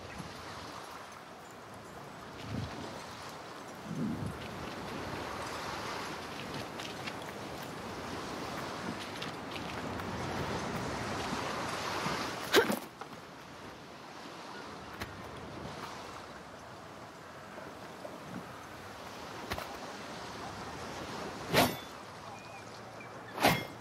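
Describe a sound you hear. Waves lap gently against a stone wall.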